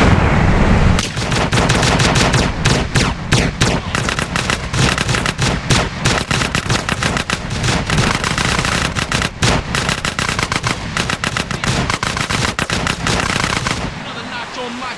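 Gunshots crack rapidly, one after another.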